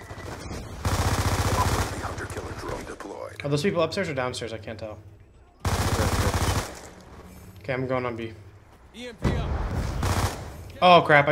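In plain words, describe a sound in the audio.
A rapid-fire gun shoots in short bursts.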